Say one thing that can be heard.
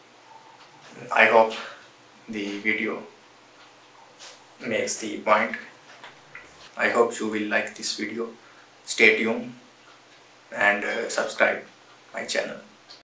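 A young man speaks calmly and close by, in short phrases with pauses.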